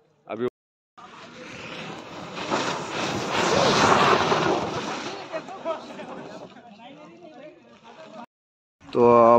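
A snow tube scrapes and slides down an icy slope.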